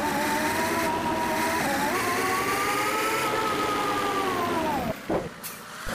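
A bus engine drones steadily and rises in pitch as it speeds up.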